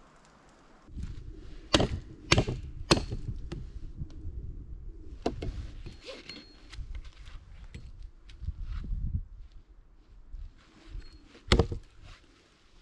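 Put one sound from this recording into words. Dry branches snap and crack.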